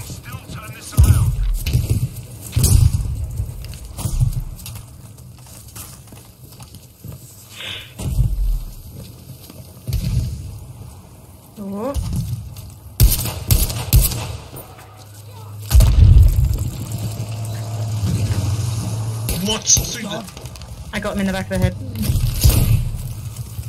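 Explosions boom nearby with deep rumbles.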